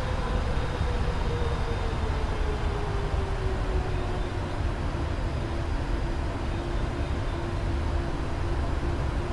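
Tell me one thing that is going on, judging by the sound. A high engine whine slowly drops in pitch.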